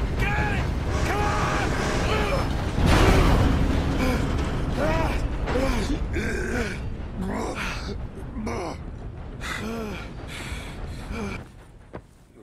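A man shouts urgently nearby.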